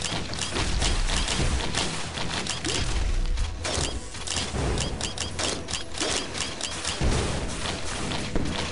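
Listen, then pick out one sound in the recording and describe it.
Rapid video game gunfire and blasts crackle continuously.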